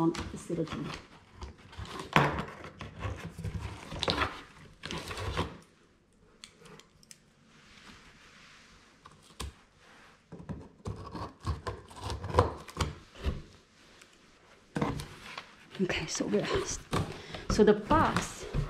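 Cardboard rustles and scrapes as a box is handled up close.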